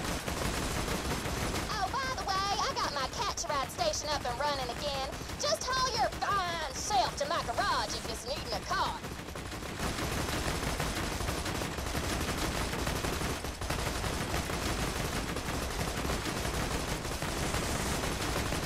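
A turret gun fires in rapid bursts.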